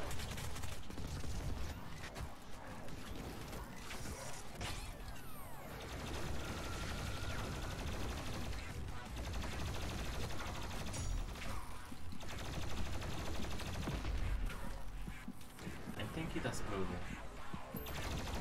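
A heavy gun fires in loud repeated blasts.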